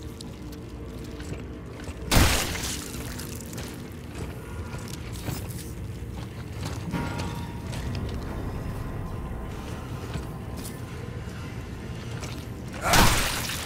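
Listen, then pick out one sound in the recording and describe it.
Heavy boots thud steadily on a hard floor.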